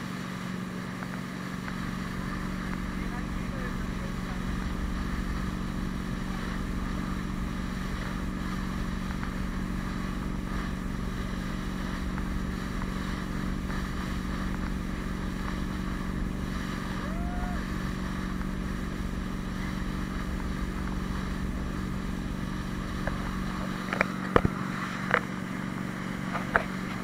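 A boat engine drones steadily close by.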